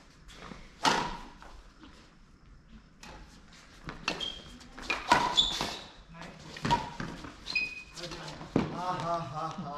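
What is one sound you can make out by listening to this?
Rackets strike a shuttlecock with sharp pops in a large echoing hall.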